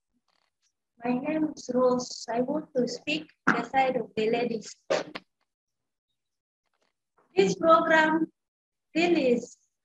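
A young woman speaks loudly and with animation, close by.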